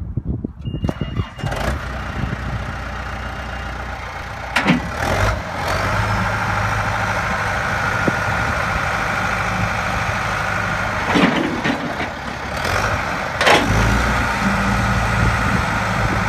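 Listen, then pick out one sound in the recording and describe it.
A diesel engine of a backhoe loader rumbles steadily nearby.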